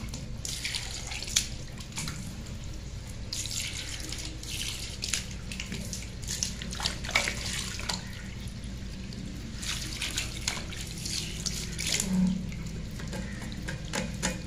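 Water runs from a tap and splashes into a sink.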